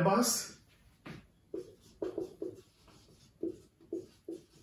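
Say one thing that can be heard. A marker squeaks and taps on a whiteboard in short strokes.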